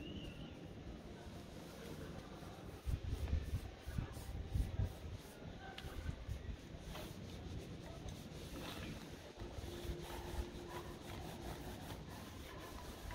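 A paintbrush brushes paint onto wood.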